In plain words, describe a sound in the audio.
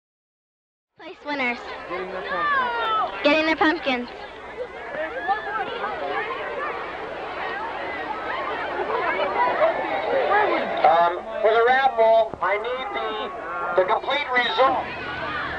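Young people chatter and talk over one another outdoors.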